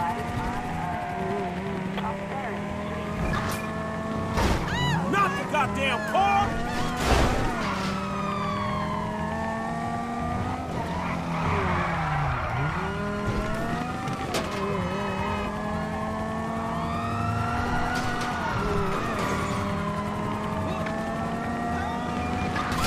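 A car engine roars steadily as the car speeds along.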